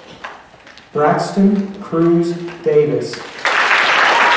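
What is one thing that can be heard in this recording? A man announces through a microphone in a large hall.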